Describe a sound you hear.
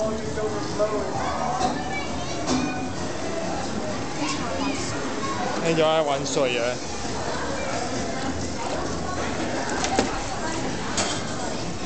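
Water splashes and trickles in a water table.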